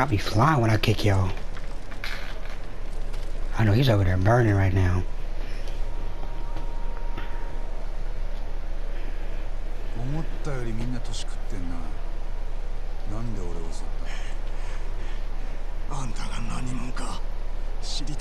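A fire crackles and burns in a barrel.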